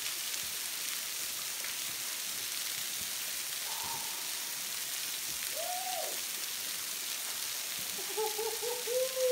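Water rushes and hisses steadily nearby.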